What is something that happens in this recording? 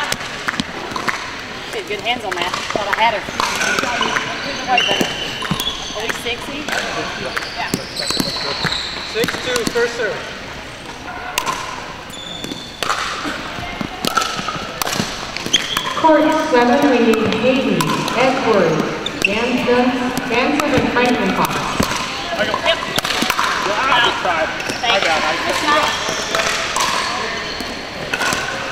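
Paddles pop against a plastic ball in quick rallies.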